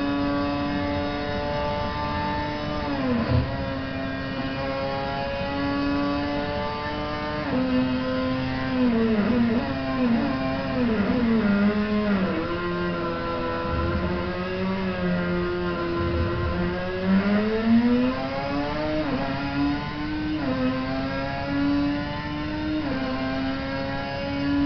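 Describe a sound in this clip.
A race car engine roars steadily, rising and falling in pitch as it shifts gears and slows into corners.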